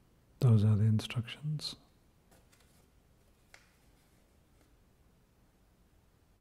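A sheet of paper rustles softly in a person's hands.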